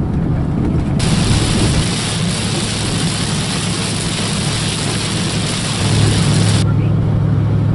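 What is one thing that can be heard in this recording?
Rain patters on a windshield.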